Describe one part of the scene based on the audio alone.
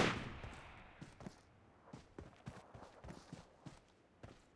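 Footsteps tread through grass.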